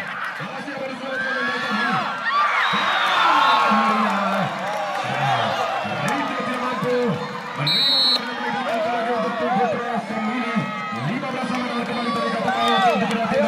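A large crowd of spectators chatters and shouts outdoors.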